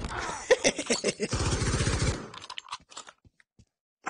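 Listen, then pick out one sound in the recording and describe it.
A rifle's metal parts click and rattle as it is handled.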